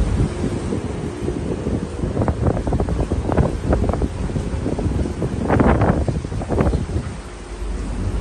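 Waves splash and wash against a ship's hull.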